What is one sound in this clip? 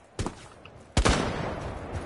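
A single gunshot cracks loudly.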